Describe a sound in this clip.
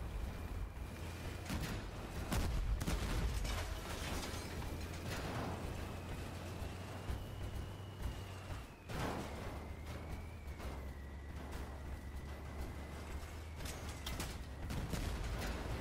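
A heavy walking machine rumbles and clanks along.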